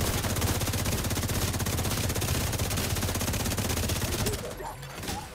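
Rapid gunfire rattles nearby.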